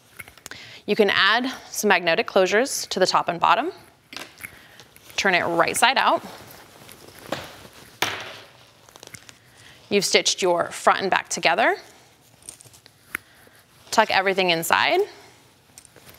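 A young woman talks calmly into a nearby microphone.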